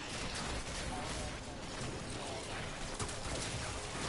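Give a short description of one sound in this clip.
Metal blades clash and whoosh in a game fight.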